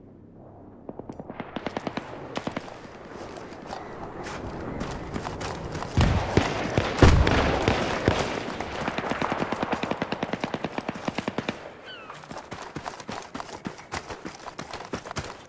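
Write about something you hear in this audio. Automatic rifle fire crackles in rapid bursts.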